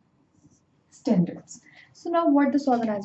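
A young woman speaks calmly, as if teaching.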